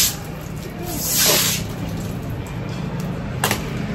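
A broom sweeps across a wooden floor.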